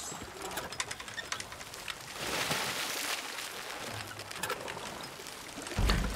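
A rope creaks as a wooden crate is hoisted.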